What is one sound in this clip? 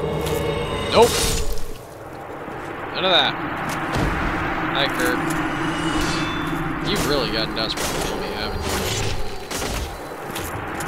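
Metal blades clang and strike in a fight.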